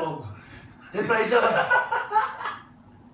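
A young man laughs loudly.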